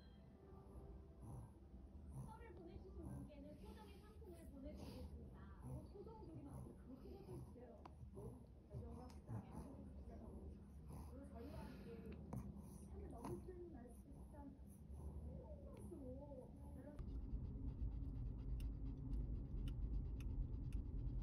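A dog breathes softly in its sleep.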